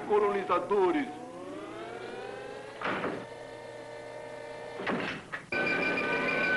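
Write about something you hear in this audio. A machine hums and rises with a sliding whine.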